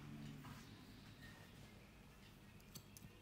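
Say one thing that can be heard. A comb scratches through a beard.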